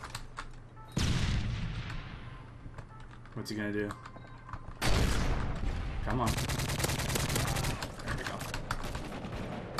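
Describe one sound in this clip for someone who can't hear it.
Gunfire from a video game rattles in rapid bursts.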